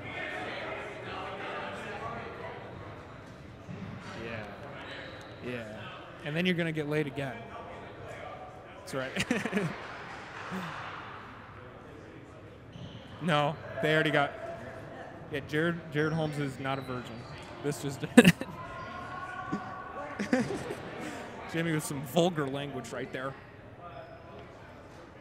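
Young men talk and call out to each other in a large echoing indoor hall.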